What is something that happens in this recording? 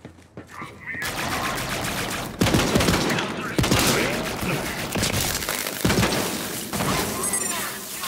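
Rapid gunfire blasts with loud, sharp bangs.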